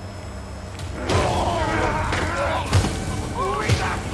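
Electricity crackles and buzzes loudly.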